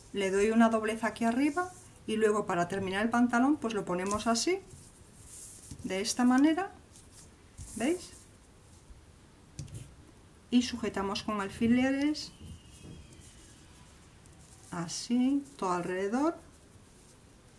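A woman speaks calmly and close by, explaining.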